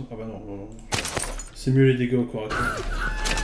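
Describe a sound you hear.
A man talks casually into a close microphone.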